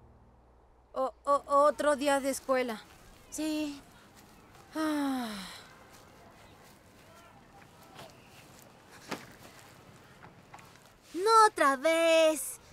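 A young girl speaks with emotion, close by.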